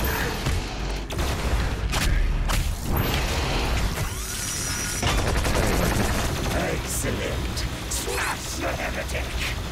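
Monsters roar and snarl.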